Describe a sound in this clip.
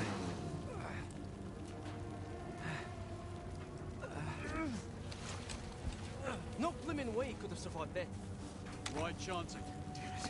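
A fire crackles and roars close by.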